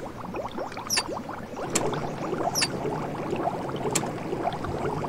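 Short, sharp clicks ring out a few times.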